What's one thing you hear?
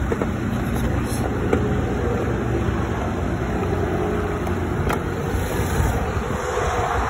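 A man talks close by.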